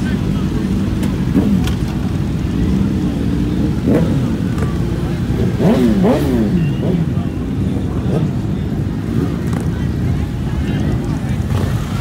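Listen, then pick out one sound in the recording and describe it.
Motorcycles ride slowly past nearby.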